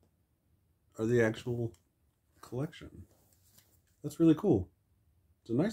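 A young man talks calmly and close to the microphone.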